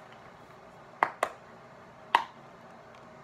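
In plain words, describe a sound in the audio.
A carton knocks against a hand.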